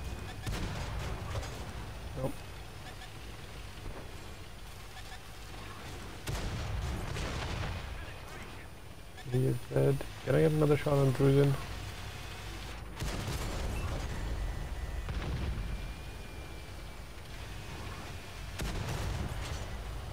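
A heavy tank engine rumbles and its tracks clatter.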